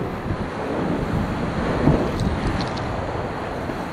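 A paddle splashes through the water.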